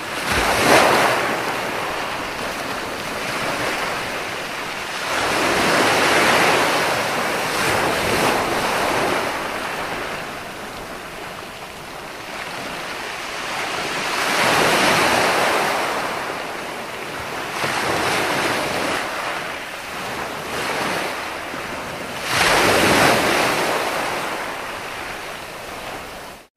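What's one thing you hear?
Ocean waves break and wash up onto the shore in slow surges.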